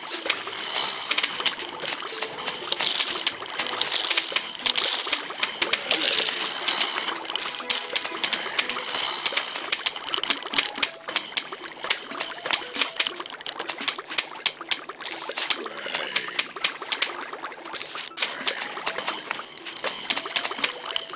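Cartoon plants shoot peas with rapid popping sounds.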